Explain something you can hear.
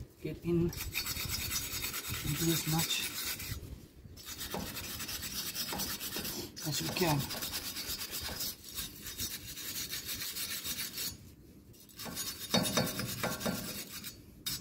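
A brush scrubs against metal with a rasping scrape.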